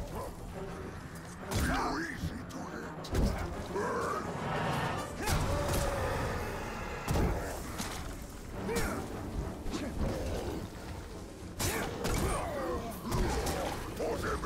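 A large beast growls and roars.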